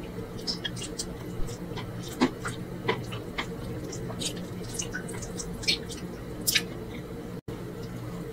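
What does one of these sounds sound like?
Fingers squish and pick through soft rice and meat close up.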